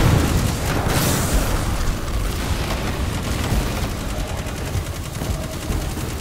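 A gun fires in rapid shots.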